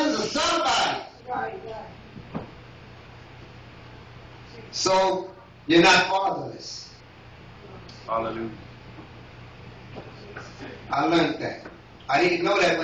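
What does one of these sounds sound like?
A man preaches into a microphone in bursts, with long pauses, over a loudspeaker in an echoing room.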